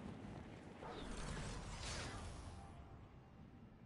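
A glider snaps open with a loud whoosh.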